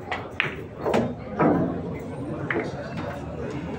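Pool balls clack together.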